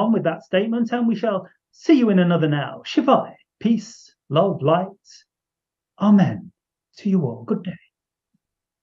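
A middle-aged man speaks calmly and close to the microphone.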